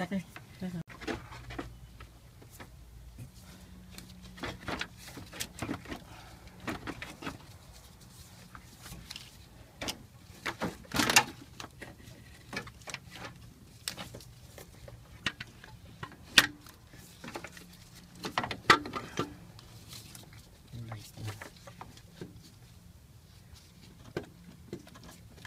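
A metal alternator knocks and clanks against engine parts as it is worked loose.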